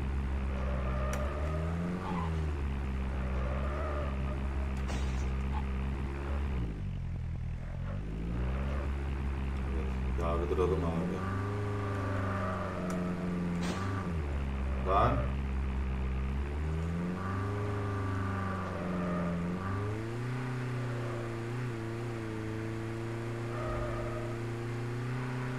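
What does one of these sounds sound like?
A vehicle engine drones and revs up and down.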